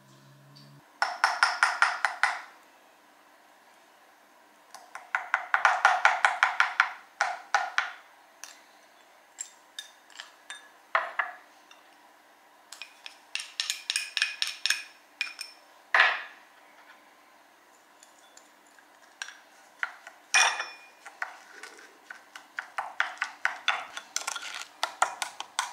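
A metal spoon clinks rapidly against a ceramic bowl in bursts of stirring.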